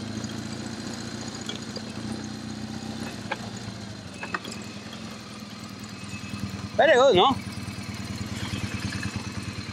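A motorcycle engine rumbles steadily as the bike rides over rough ground.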